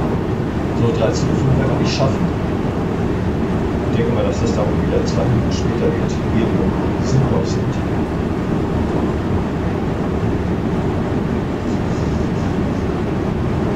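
Wheels clack over rail joints.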